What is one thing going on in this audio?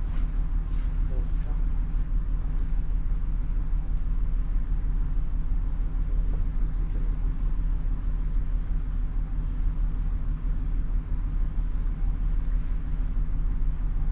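Water rushes past a ship's hull.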